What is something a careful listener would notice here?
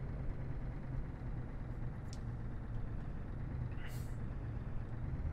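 Tyres roll steadily over the road.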